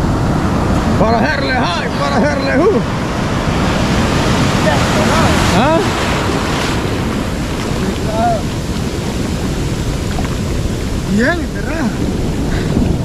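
A young man calls out and shouts with excitement close by.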